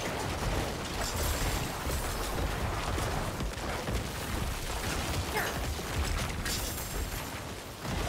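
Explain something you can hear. Game combat effects crash and clatter.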